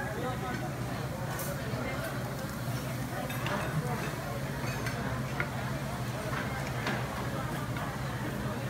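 Cutlery clinks softly against plates.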